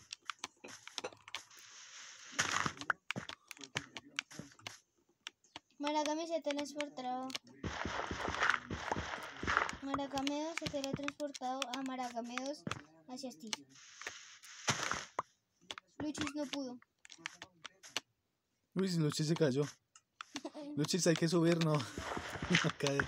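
Dirt blocks crunch as they are dug out, in short repeated bursts.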